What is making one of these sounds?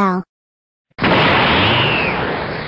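Flames roar up with a sudden whoosh.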